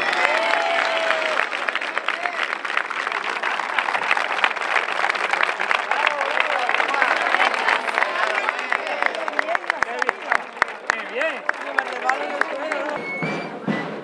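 Castanets click rapidly.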